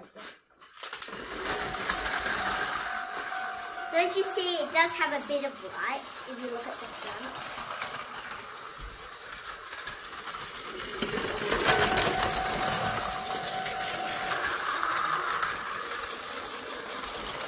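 A toy train's small motor whirs as it runs along plastic track.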